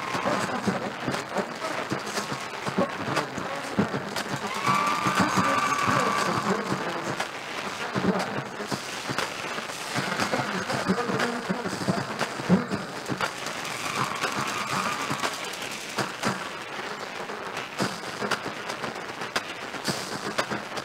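A marching band plays brass and drums across a large outdoor stadium.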